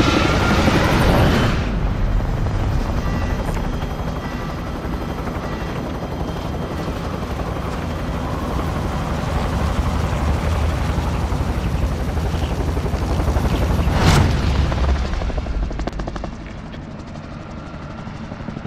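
Helicopter rotors thump and roar steadily.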